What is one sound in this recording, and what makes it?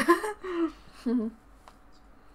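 A young woman speaks briefly and softly close by.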